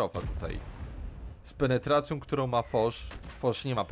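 A tank gun fires with a loud blast.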